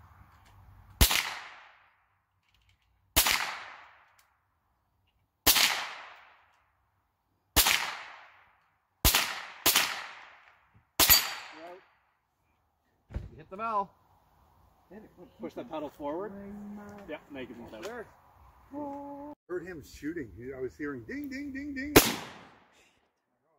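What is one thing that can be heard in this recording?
A gun fires single loud shots outdoors, each cracking and echoing away.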